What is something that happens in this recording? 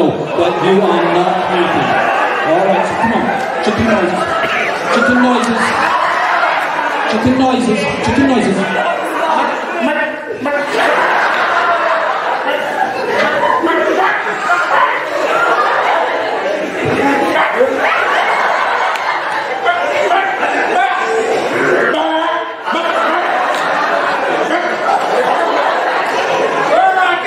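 A crowd of teenagers laughs loudly.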